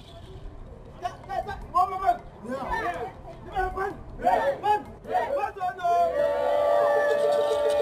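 A group of women sing together outdoors.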